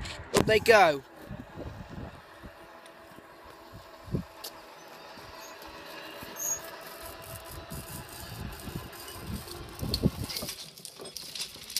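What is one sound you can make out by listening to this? A crossing barrier rises with a low, steady mechanical hum.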